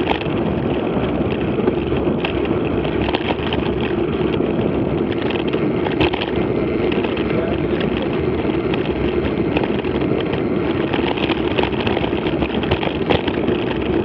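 Wind rumbles steadily across a moving microphone.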